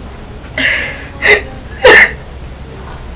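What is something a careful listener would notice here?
A young woman sobs and wails loudly up close.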